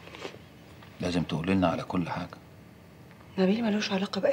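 A young woman speaks quietly close by.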